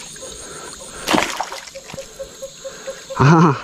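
A stick splashes and swishes in shallow water.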